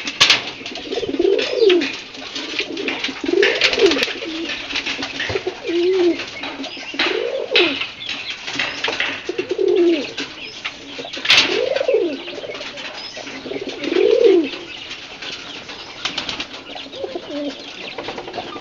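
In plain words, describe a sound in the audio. Pigeons coo close by in low calls that rise and fall.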